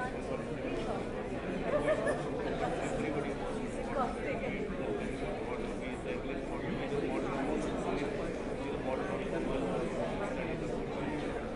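A middle-aged man talks quietly and closely to another man.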